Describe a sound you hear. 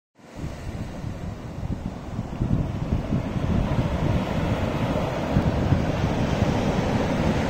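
Small waves wash gently onto the shore in the distance.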